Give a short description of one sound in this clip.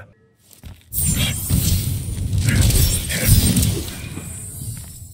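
Flames burst out with a loud roar and crackle.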